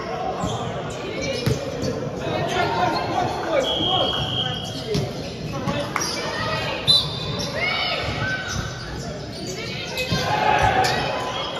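Players call out and chatter loudly across the hall.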